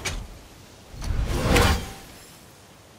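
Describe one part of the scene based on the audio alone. An axe whooshes through the air and slaps back into a hand.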